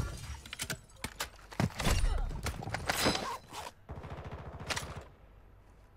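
Gunshots boom in quick bursts.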